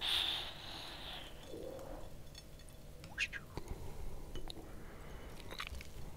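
Grated cheese is sprinkled onto a plate of spaghetti.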